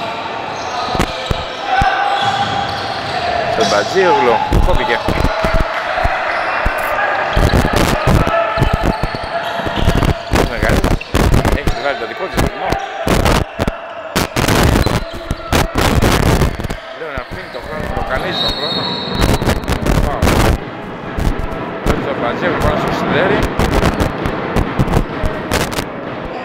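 A basketball bounces on a wooden court with loud thuds.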